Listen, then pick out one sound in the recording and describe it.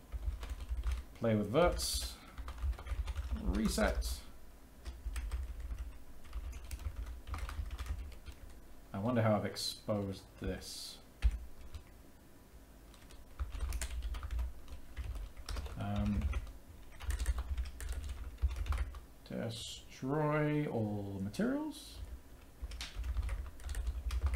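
Keys clatter on a keyboard in quick taps.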